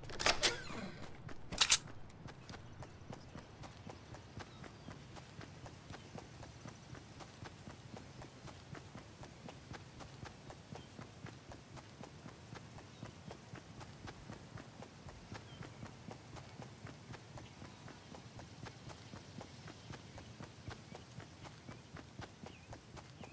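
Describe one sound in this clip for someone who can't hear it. Quick footsteps run steadily over grass.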